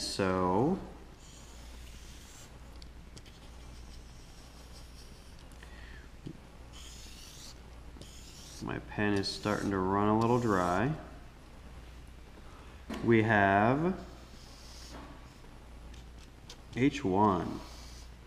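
A felt-tip marker squeaks and scratches across paper.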